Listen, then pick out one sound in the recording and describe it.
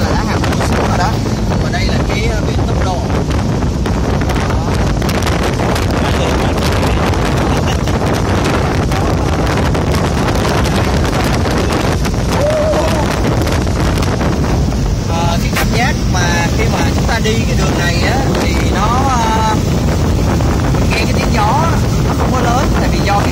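A young man talks loudly and animatedly over the wind, close by.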